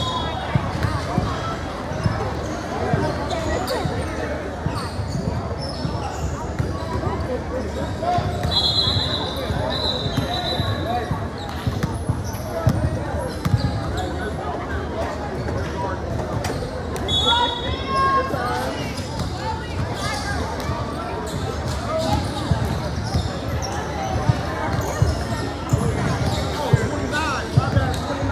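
A crowd chatters throughout a large echoing gym.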